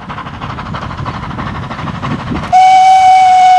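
A steam locomotive chuffs rhythmically in the distance.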